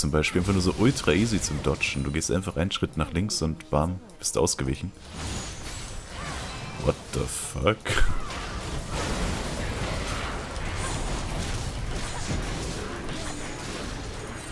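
Magic spells burst and crackle in quick bursts.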